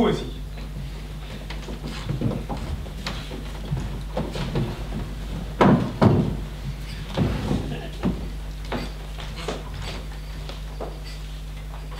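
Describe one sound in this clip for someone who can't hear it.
Footsteps thud on a wooden stage floor.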